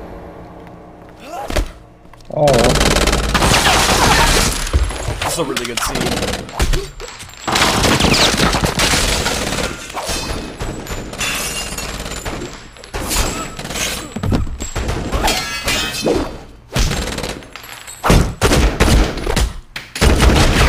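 Punches land with heavy thuds during a fight.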